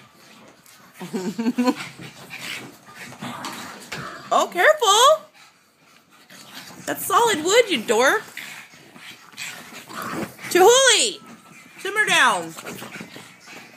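Small dogs growl and yip as they play-fight.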